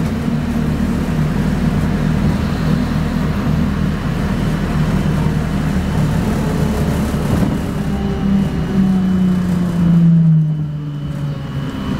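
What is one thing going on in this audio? Traffic rushes past on a wide road.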